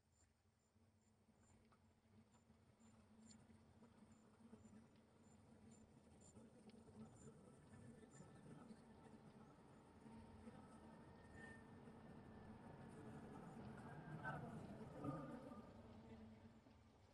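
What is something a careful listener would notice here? A car engine hums as it drives slowly closer, growing louder.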